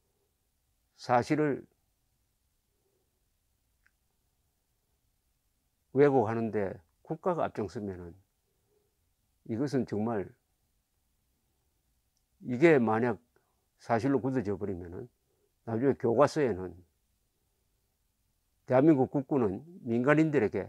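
An elderly man speaks calmly into a microphone, close by, in short phrases with pauses.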